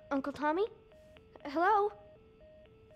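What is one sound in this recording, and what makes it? A young boy calls out questioningly.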